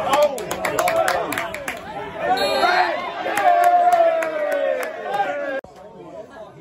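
A crowd of spectators shouts and jeers close by.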